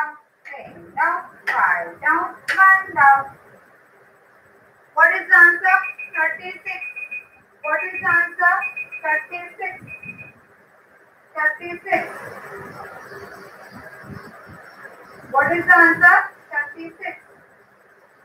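A woman speaks clearly, close by.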